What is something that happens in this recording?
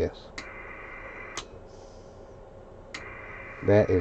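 A knob clicks as a hand turns it.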